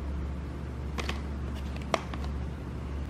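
A plastic case clicks as it is set down on a table.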